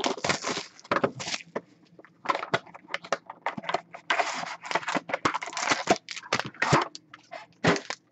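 Cardboard packaging rustles and scrapes as hands handle it.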